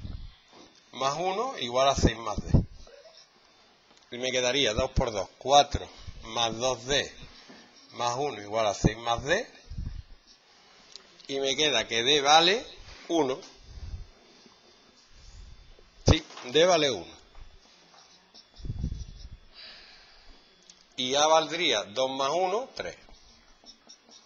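A man explains calmly, close by, in short bursts.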